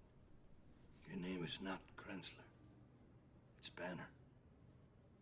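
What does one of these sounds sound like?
An older man speaks calmly and quietly nearby.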